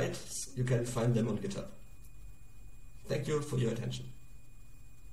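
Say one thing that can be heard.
A young man speaks calmly and closely into a microphone, with short pauses.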